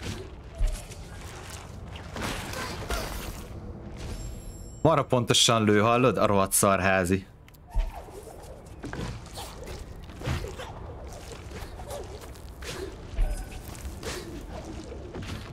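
Soft game sound effects whoosh and chime.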